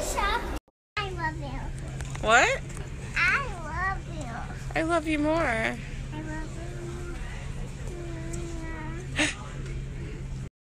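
A toddler squeals and babbles excitedly close by.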